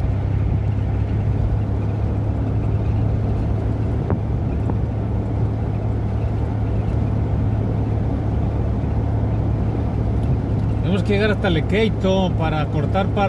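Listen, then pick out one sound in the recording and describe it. A car engine hums steadily with road noise as the car drives along.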